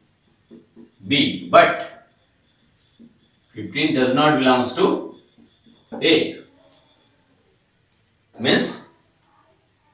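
A man speaks calmly and clearly into a close microphone, in short phrases.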